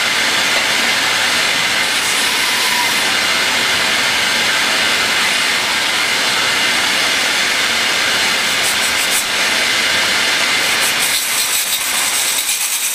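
A shop vacuum roars steadily, sucking air through its hose.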